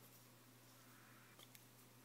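Paper strips rustle softly as a hand moves them.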